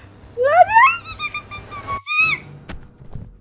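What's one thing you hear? A young woman screams loudly into a microphone.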